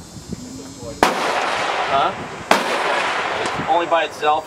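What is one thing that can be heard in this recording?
A rifle fires loud shots outdoors, each with a booming echo.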